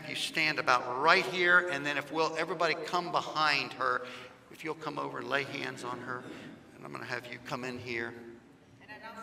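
A man speaks with animation through a loudspeaker in a large echoing hall.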